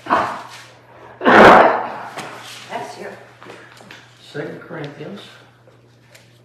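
An elderly man reads aloud calmly, close by.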